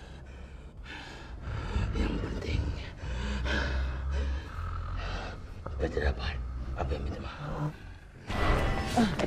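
A man speaks in a low, menacing voice.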